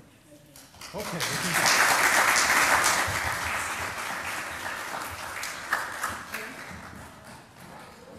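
An audience applauds loudly, then the clapping fades.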